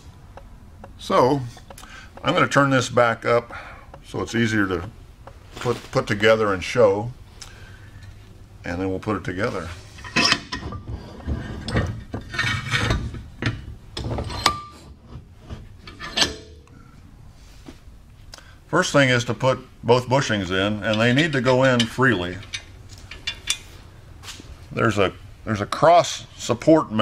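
A man talks calmly close by, explaining.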